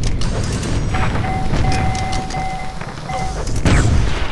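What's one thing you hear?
An electric beam weapon crackles and hums.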